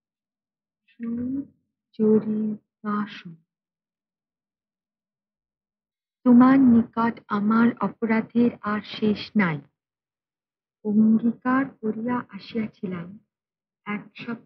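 A woman reads aloud slowly and calmly, close by.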